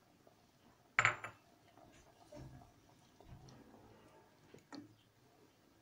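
A wooden spoon knocks against the side of a metal pot.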